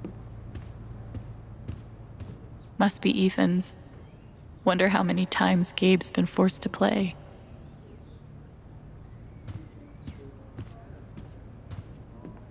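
Footsteps tap softly on a wooden floor.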